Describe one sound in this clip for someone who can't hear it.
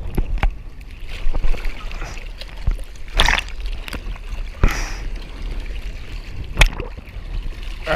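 Sea water sloshes and splashes close by.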